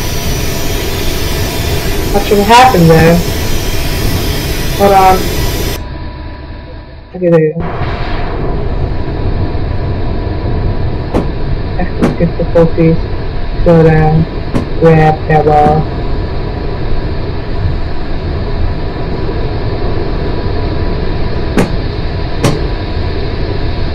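A locomotive engine rumbles steadily as a train rolls along.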